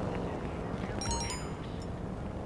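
A short electronic notification chime rings.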